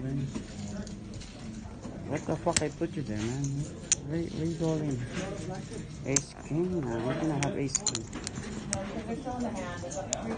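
Poker chips clack together as a hand handles a stack.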